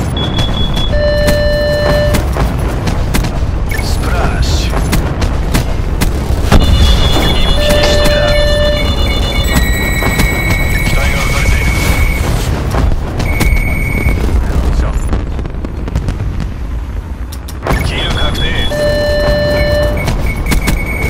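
Short electronic chimes ring out.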